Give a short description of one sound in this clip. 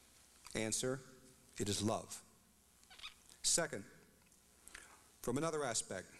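A middle-aged man speaks steadily into a microphone in short phrases.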